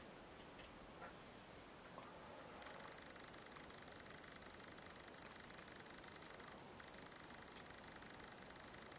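A brush brushes softly across paper.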